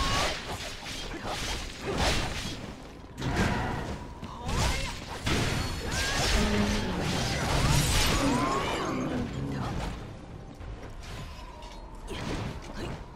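Heavy weapons strike and slash with loud impacts.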